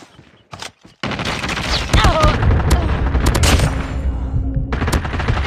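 A machine gun fires in rapid, heavy bursts.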